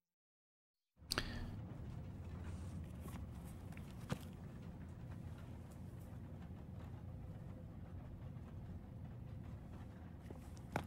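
Fingers brush and tap across a book cover.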